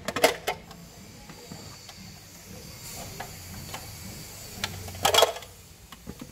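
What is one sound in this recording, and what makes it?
Clear plastic cases and plastic figurines knock and click as hands move them.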